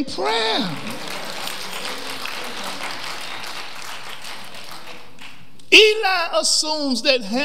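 A man preaches with animation into a microphone in an echoing hall.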